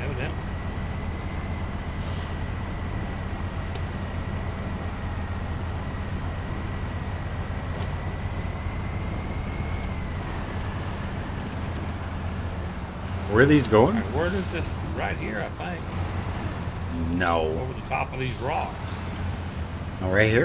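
A heavy truck engine rumbles low and steady as it drives along a muddy track.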